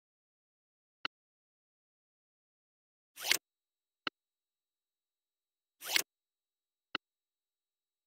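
A short click sounds now and then.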